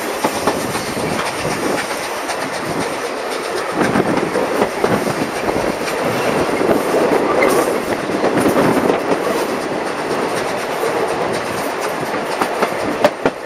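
Train carriages rattle and clatter steadily along the tracks.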